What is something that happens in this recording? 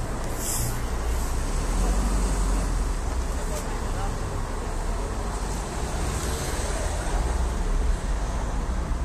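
Cars drive past close by on a city street.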